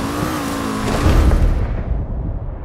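A car lands with a heavy thud.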